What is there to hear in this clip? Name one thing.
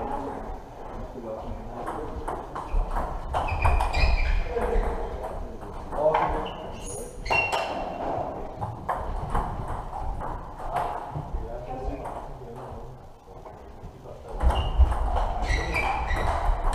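Table tennis balls click rapidly against paddles and tables in a large echoing hall.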